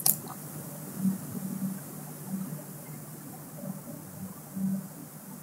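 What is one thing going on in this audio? A young woman speaks softly over an online call.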